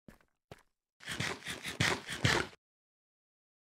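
A game character munches food with quick crunching bites.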